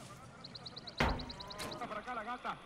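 A shotgun is pumped with a sharp metallic clack.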